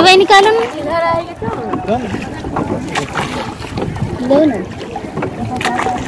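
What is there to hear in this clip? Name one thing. Water laps and splashes against a boat.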